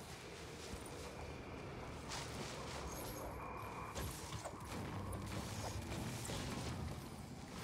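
A pickaxe strikes and shatters rocks with sharp crunching hits.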